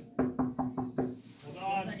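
A person knocks on a door.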